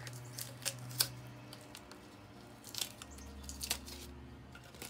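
Tape rips as it is pulled away.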